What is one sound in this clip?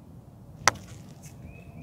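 A putter taps a golf ball with a sharp click.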